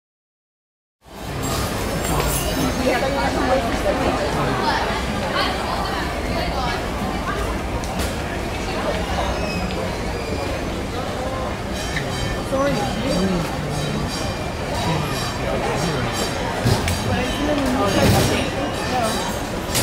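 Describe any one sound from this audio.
A steam locomotive pulls passenger cars along rails.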